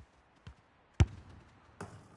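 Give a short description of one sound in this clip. A football is kicked hard with a sharp thud.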